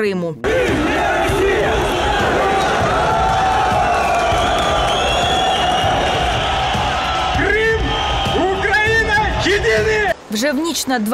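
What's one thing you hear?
A large crowd shouts and chants outdoors.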